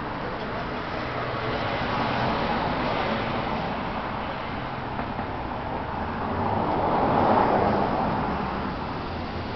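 Cars swell and pass by on a road nearby.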